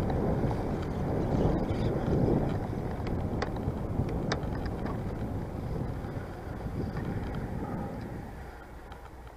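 Wind rushes loudly past while cycling outdoors.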